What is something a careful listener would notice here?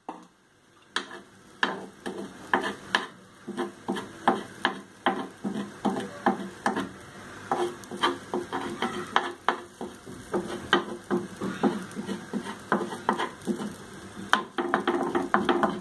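A metal spatula scrapes and taps against a hot pan.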